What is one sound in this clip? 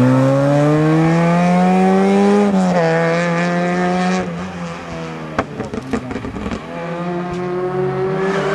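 A rally car engine revs hard and rises and falls through the gears.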